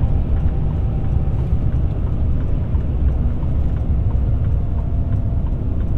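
A car drives steadily along a road with a low, constant rumble.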